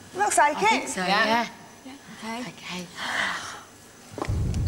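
Young women speak excitedly into microphones over a loudspeaker system.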